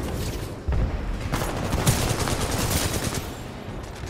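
Explosions burst with loud booms.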